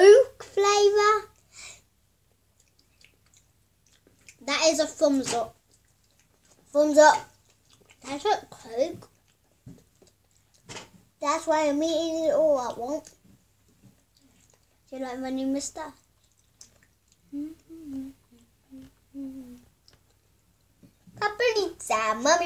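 A second young girl giggles and talks close by.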